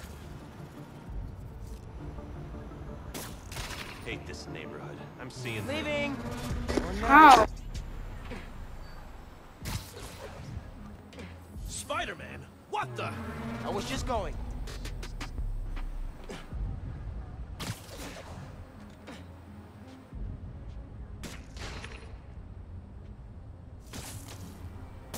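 Air whooshes past as a figure swings and leaps through the air.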